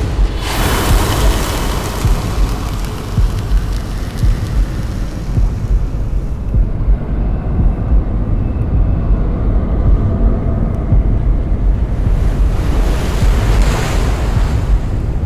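A huge mass of snow and ice rumbles and roars down.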